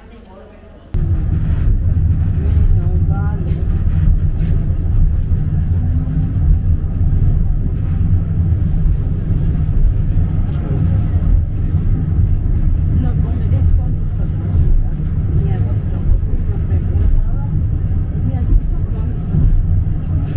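A funicular car rumbles and rattles steadily along its rails.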